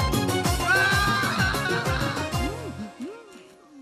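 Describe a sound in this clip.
A man shouts loudly in alarm.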